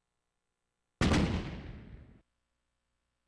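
A deep whooshing boom sounds and fades away.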